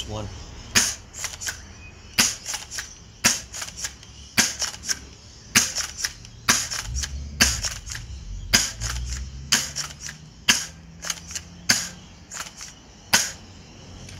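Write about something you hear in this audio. An airsoft shotgun's pump racks with quick clacks after each shot.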